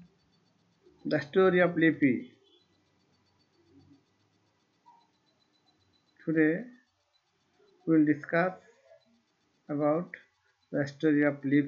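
A middle-aged man speaks calmly and slowly into a close microphone, with pauses.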